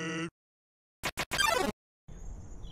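A sharp electronic alert sounds briefly.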